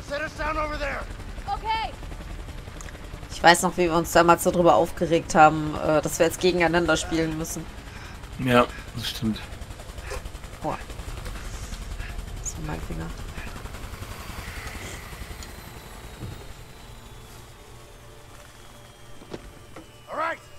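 A helicopter engine drones and its rotor thumps.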